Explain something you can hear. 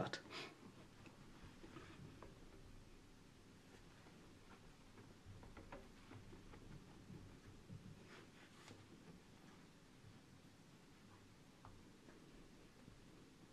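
A cloth rubs and squeaks faintly against a glass board.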